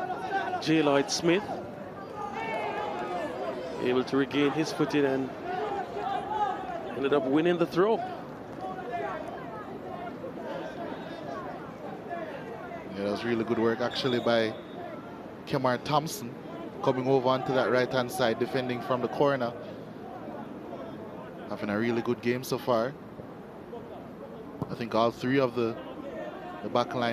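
A crowd murmurs faintly in the stands outdoors.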